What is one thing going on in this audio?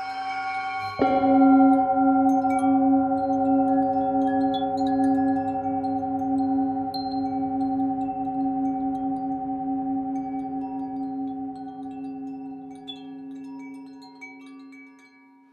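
A metal singing bowl is struck once and rings with a long, wavering hum that slowly fades.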